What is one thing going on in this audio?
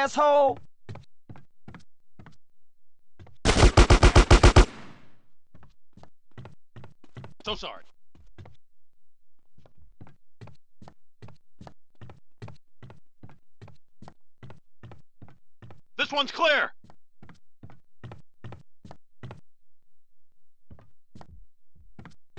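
Quick footsteps run steadily on a hard floor.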